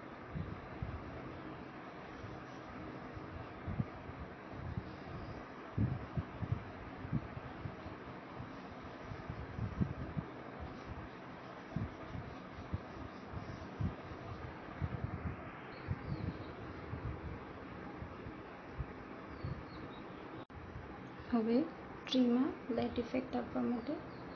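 A paintbrush taps and brushes softly on paper.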